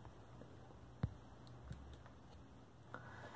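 A small plastic puzzle cube clicks as it is set down on a wooden table.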